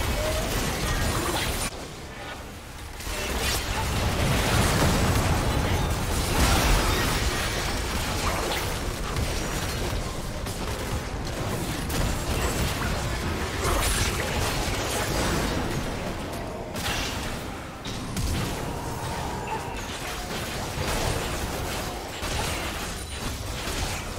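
Magic spells whoosh and explosions boom in a busy fight.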